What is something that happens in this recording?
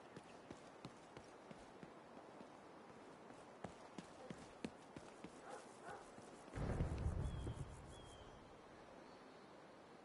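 Footsteps crunch through undergrowth.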